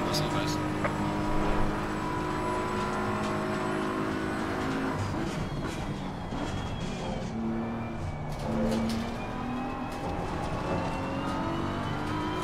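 A racing car engine roars at high speed, then drops in pitch as the car brakes and downshifts.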